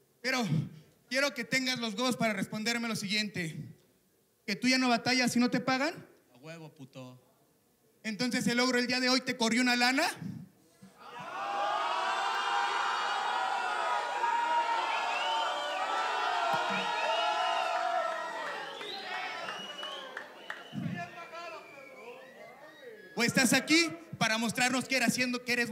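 A man raps energetically into a microphone over loudspeakers.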